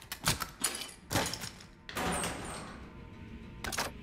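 A metal locker door clanks and creaks open.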